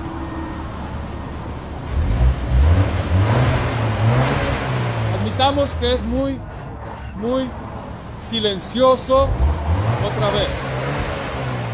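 A car engine idles and then revs up with a deep exhaust roar, settling back between revs.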